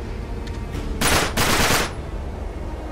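A pistol fires several shots in quick succession.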